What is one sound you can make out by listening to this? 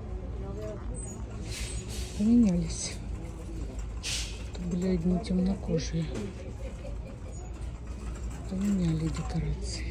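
A shopping cart rolls along a hard floor with a low rumble.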